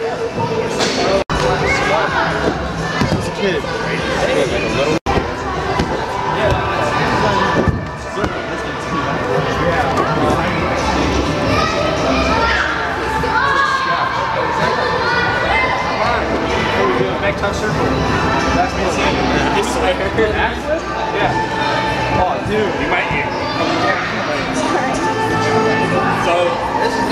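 Young men talk and call out to each other in a large echoing hall.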